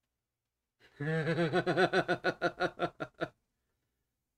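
A middle-aged man laughs heartily close to a microphone.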